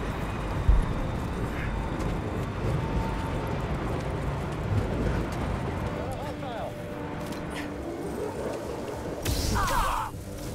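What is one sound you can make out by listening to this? Wind roars steadily over a moving ship.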